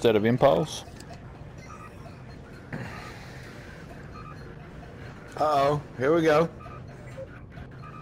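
A control panel gives short, soft electronic beeps.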